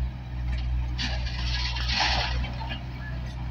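Gravel pours from a loader bucket into a truck bed.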